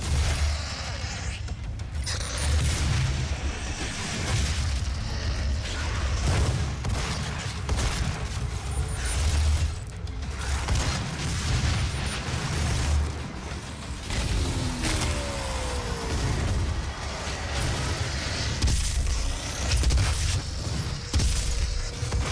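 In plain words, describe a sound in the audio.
Heavy gunfire blasts again and again.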